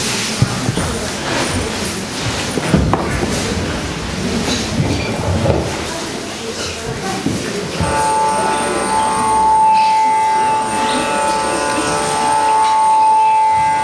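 A man plays a long wooden flute with steady, held notes.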